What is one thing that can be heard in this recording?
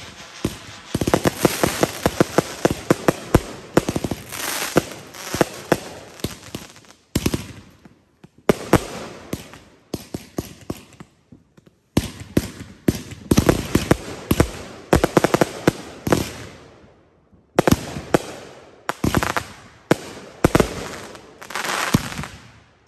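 Fireworks crackle and bang loudly in rapid bursts outdoors.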